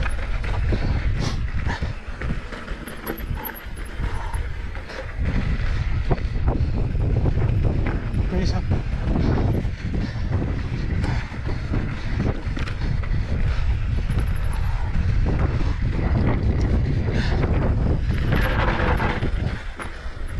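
A mountain bike rattles and clatters over bumps.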